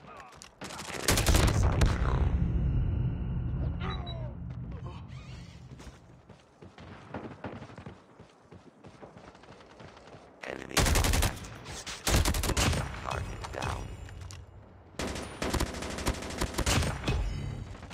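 A gun fires in rapid loud bursts.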